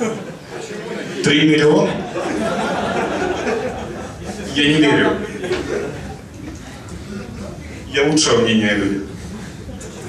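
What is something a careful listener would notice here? A young man speaks with animation through a microphone in a room with some echo.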